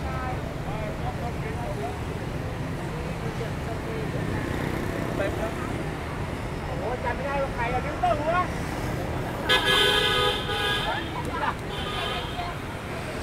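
A crowd of people chat in the distance, outdoors.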